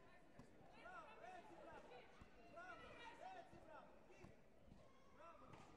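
Taekwondo kicks thud against body protectors in a large echoing hall.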